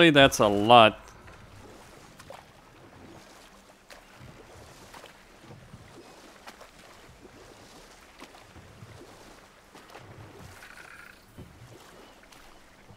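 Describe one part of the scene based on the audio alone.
A wooden paddle splashes through water in slow, even strokes.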